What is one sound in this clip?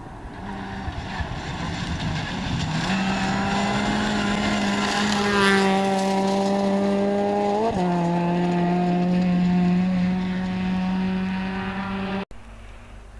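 A rally car engine roars loudly at high revs as the car speeds past close by.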